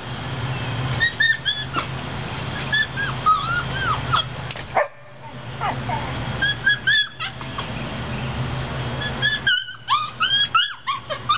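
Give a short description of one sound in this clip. A puppy whines in short, high cries.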